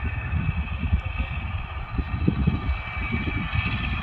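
A tractor engine rumbles in the distance.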